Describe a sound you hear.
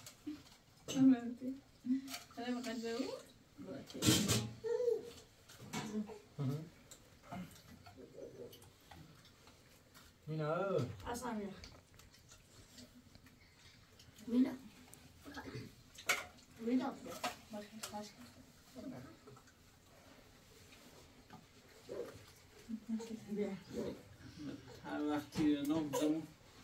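Dishes and cutlery clink softly.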